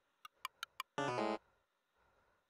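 A loud electronic chime rings briefly.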